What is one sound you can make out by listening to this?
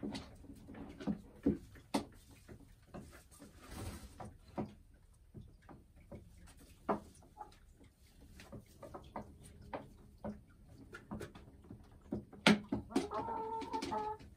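A hen clucks softly and murmurs close by.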